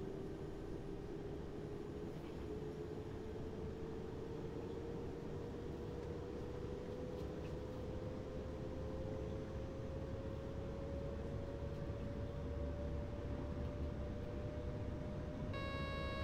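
Train wheels rumble steadily over the rails.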